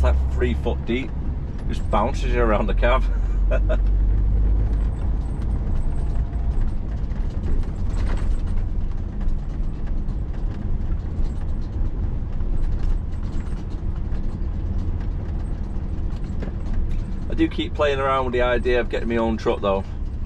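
A lorry's diesel engine rumbles steadily at low speed.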